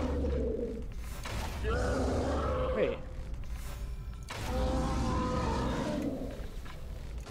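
A monstrous creature growls and snarls deeply.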